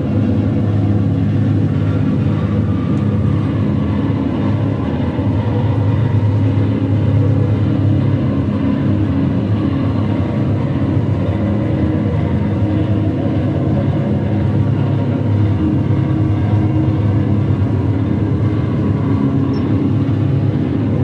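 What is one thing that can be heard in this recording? A loud, distorted electric guitar drones through effects.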